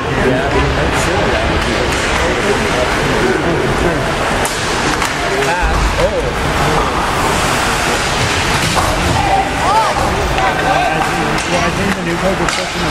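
A crowd of spectators murmurs and chatters in a large echoing arena.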